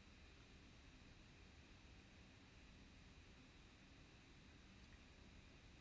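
A plastic bottle crinkles faintly.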